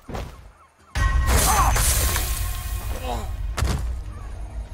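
A blade slashes and stabs with a wet thud.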